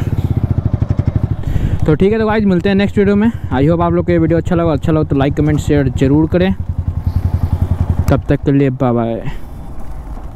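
A motorcycle engine revs loudly in rapid bursts.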